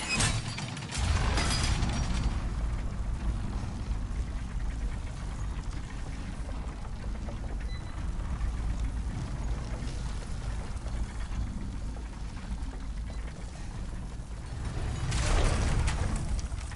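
A low mechanical rumble drones steadily.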